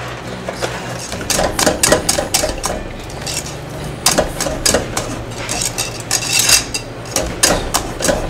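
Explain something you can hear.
A wire whisk beats and scrapes quickly against a metal pot.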